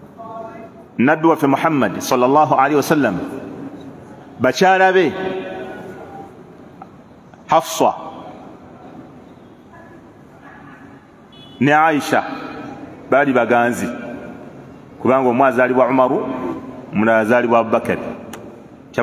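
A man speaks into a microphone with pauses, his voice echoing in a room.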